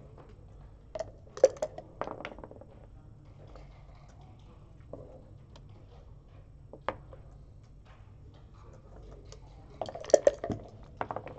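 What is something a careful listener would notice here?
Game pieces click and clack as they are moved on a board.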